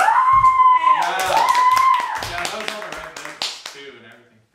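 A boy claps his hands.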